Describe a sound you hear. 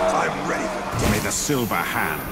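A blade strikes with a sharp hit.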